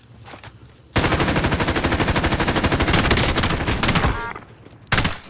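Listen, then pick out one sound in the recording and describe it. A rifle fires a long, rapid burst of shots.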